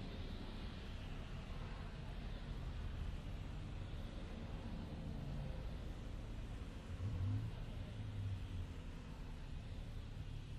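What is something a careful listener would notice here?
Road traffic rumbles past steadily.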